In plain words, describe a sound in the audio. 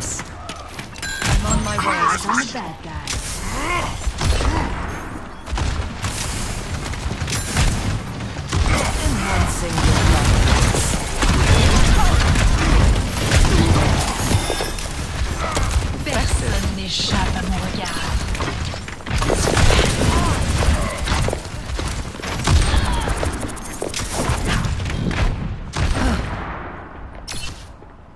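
Video game weapons fire and energy blasts crackle in quick bursts.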